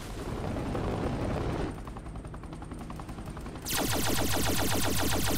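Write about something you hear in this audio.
A helicopter engine hums and its rotor chops steadily.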